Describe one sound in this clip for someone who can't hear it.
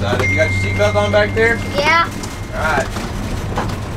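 A young boy talks nearby.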